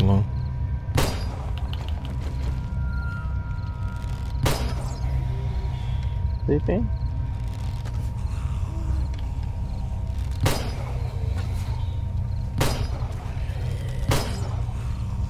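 A weapon strikes with sharp, dull thuds, several times.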